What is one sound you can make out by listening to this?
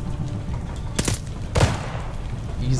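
A gun's metal parts click and clack as it is handled.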